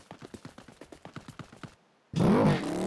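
Footsteps tread quickly on grass.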